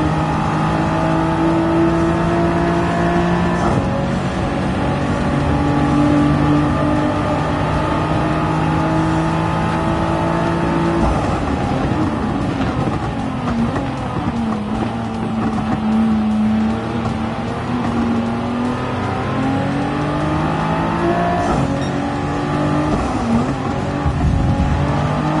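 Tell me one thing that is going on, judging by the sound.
A racing car engine roars loudly, revving up through the gears and dropping in pitch as it slows.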